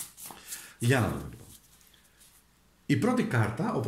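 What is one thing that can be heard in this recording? Playing cards rustle and slide as they are handled.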